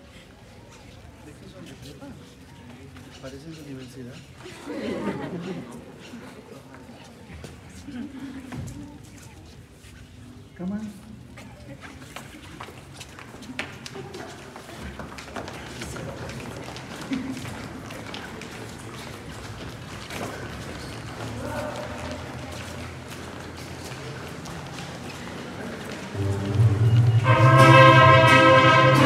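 A crowd of young men and women murmur and chatter nearby.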